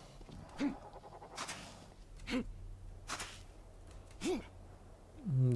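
Small reptile-like creatures chirp in short, quick calls.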